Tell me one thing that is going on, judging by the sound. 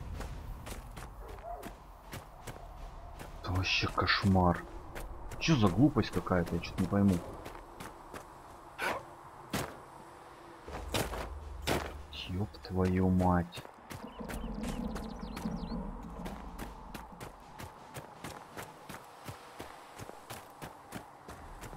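Footsteps crunch steadily over ice and snow.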